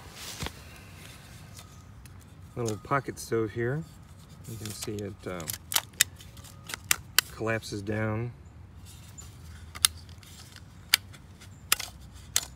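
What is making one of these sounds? A small metal stove clicks and clacks as it is folded.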